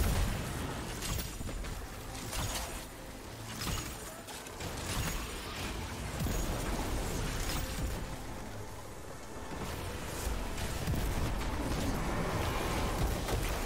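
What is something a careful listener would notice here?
Electric crackling bursts and explosions ring out.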